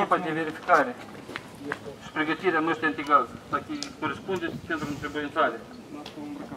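A man speaks loudly nearby outdoors.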